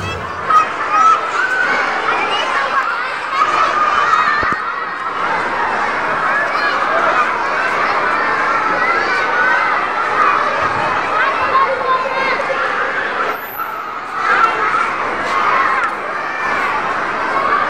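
A crowd of young children chatters and shouts excitedly in a large echoing hall.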